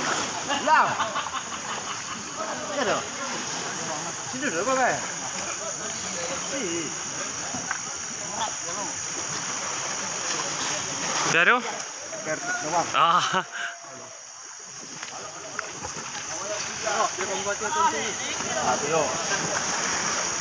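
A crowd of men and boys shout and call out across a river outdoors.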